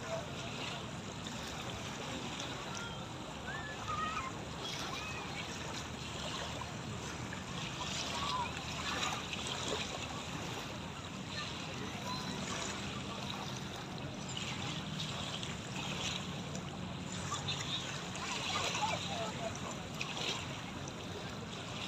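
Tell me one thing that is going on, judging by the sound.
Small waves lap gently at the shore, steady throughout.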